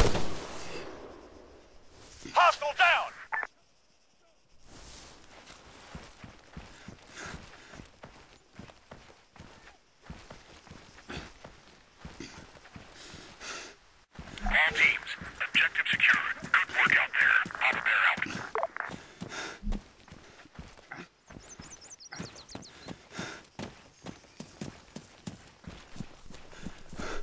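Footsteps crunch steadily over grass and dirt.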